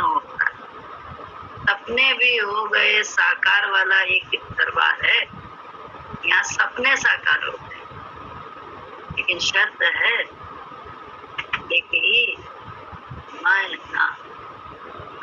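An elderly woman speaks with feeling, close to a microphone over an online call.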